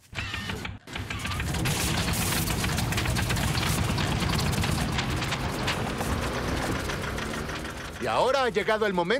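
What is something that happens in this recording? An excavator engine starts and rumbles loudly.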